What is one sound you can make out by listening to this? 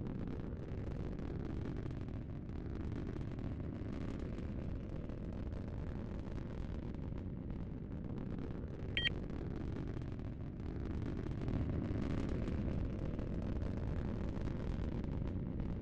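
A deep spaceship engine rumble drones steadily.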